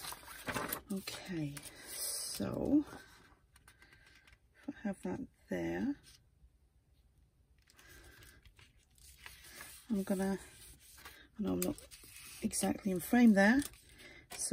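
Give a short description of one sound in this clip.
Paper rustles as it is handled and smoothed flat.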